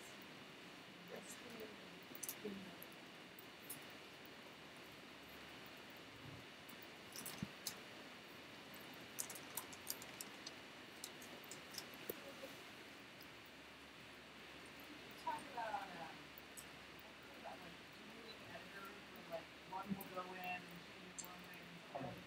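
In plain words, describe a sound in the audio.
A woman speaks into a microphone across a large room, faint and echoing.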